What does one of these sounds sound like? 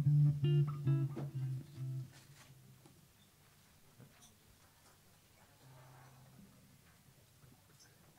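An electric bass plays a bass line.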